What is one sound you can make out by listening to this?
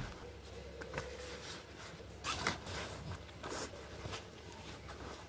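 A plastic object clicks and knocks against a hard case.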